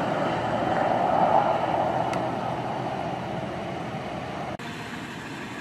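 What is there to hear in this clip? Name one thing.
A car drives along a road at a distance.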